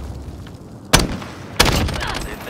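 Gunshots crack sharply.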